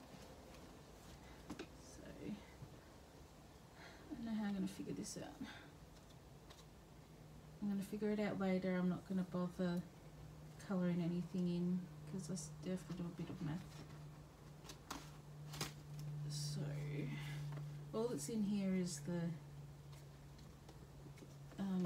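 Plastic pockets rustle and crinkle as they are handled.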